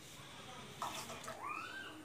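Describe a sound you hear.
Milk pours into a simmering pot.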